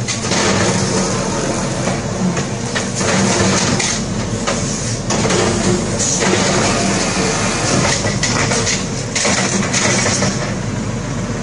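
A garbage truck's lifting arm whirs.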